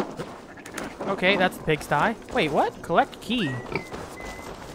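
Pigs squeal and grunt close by.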